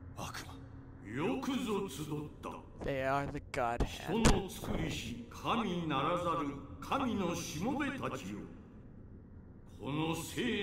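A man speaks in a deep, slow, echoing voice.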